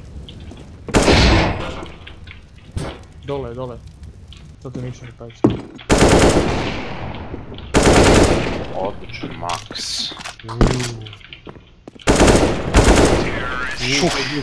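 Rifle gunfire bursts out in sharp volleys.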